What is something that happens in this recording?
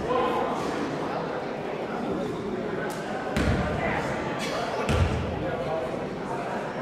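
A crowd of spectators chatters in the background.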